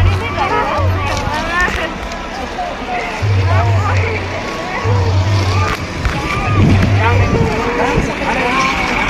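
A crowd of men, women and children chatter and call out nearby, outdoors.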